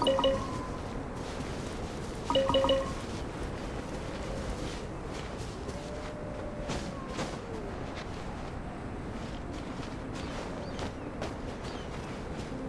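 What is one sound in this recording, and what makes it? Footsteps crunch quickly on snow.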